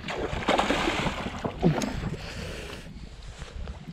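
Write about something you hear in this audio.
A fish splashes in water.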